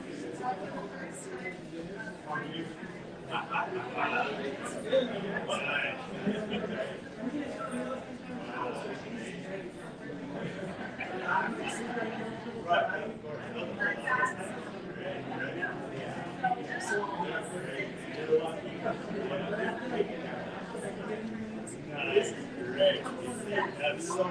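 Several men and women chat at once, some distance away, in a lively room.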